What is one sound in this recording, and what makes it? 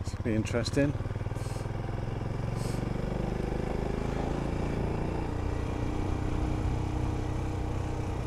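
A motorcycle engine rumbles steadily as the bike rides along.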